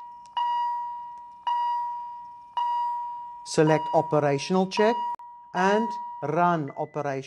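An electronic device beeps with a high steady tone, about once a second.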